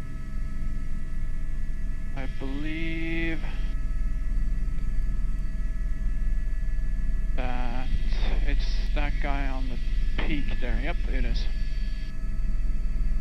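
A helicopter engine and rotor drone steadily from close by.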